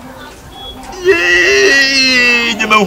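A young man wails and sobs loudly.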